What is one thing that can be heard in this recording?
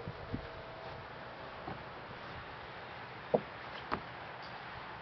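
Items knock and thump inside a small wooden boat.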